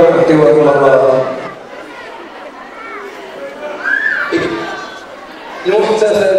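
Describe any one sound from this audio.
A man speaks into a microphone with animation, heard through loudspeakers in a large echoing hall.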